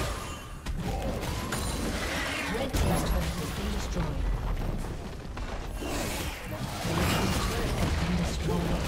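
Game spell effects crackle and boom during a fight.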